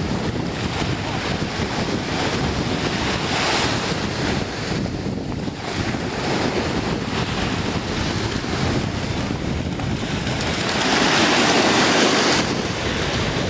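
A dog splashes as it swims.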